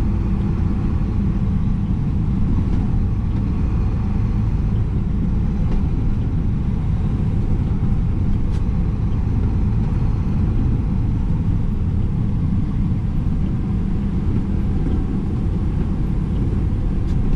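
A heavy truck engine rumbles steadily from inside the cab.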